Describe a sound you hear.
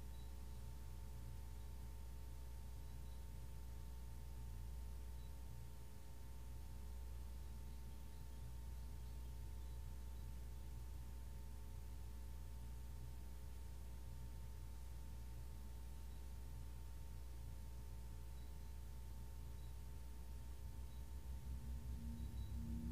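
A large gong hums with a low, steady drone that swells and pulses near the end.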